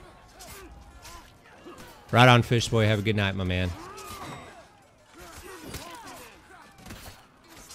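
Swords clash and clang in a noisy battle.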